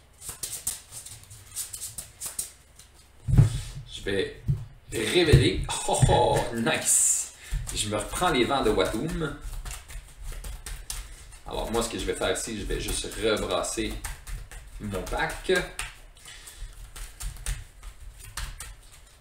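Cards rustle and shuffle in hands.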